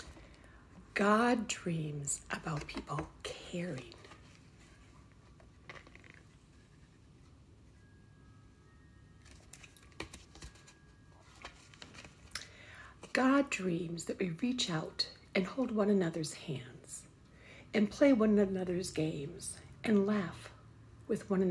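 An older woman reads aloud expressively, close by.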